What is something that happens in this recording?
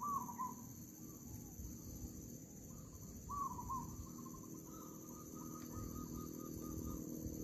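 A caged bird chirps in short repeated calls.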